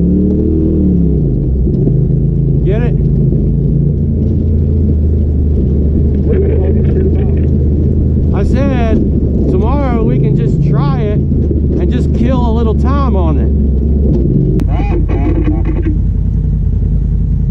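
An off-road vehicle engine hums steadily while driving over rough ground.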